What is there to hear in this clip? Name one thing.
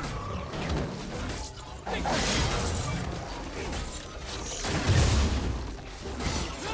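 Magic spells whoosh and crackle during a game battle.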